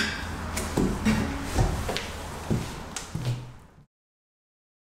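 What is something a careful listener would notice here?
Footsteps thump on a metal floor.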